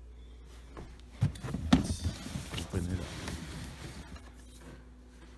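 A cardboard box scrapes and rustles as it is handled and opened.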